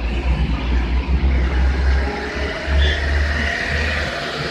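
A bus engine rumbles past close by.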